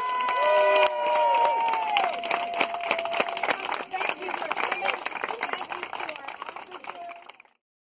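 A crowd of children and adults cheers and shouts outdoors.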